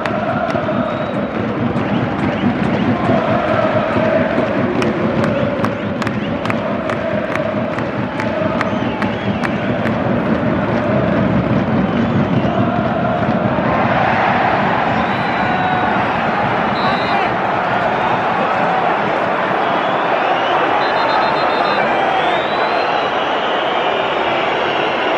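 A large stadium crowd chants and sings loudly.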